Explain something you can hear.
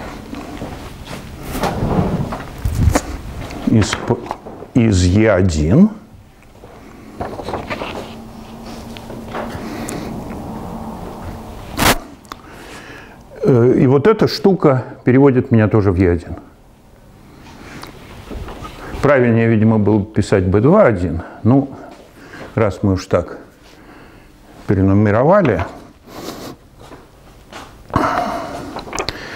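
An elderly man lectures calmly, in bursts with pauses.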